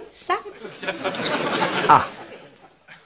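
A young woman exclaims in surprise close by.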